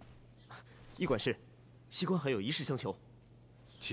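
A young man speaks earnestly and close by.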